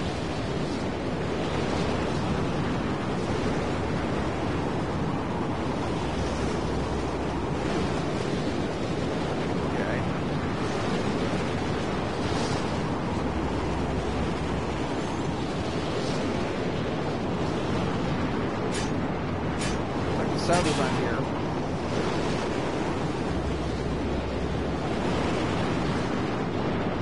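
Wind roars steadily in a heavy sandstorm.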